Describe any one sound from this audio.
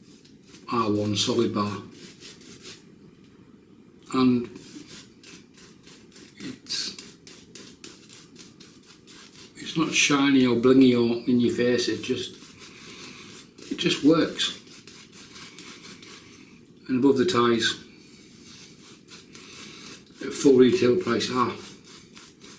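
A shaving brush swishes and scrubs lather on a man's face.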